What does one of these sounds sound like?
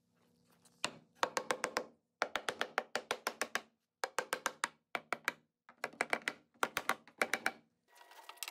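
A hammer taps rapidly on wood.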